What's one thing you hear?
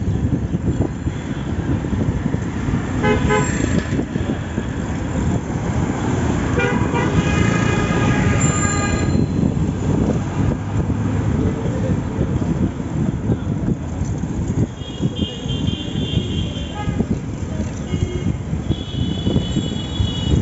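Traffic rumbles steadily along a busy street, outdoors.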